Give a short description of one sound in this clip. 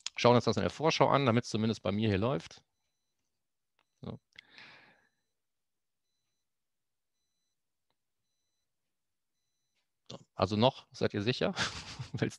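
A man talks calmly through an online call, with pauses.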